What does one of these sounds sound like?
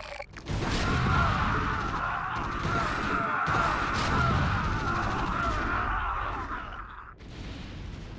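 Guns fire rapidly in a loud battle.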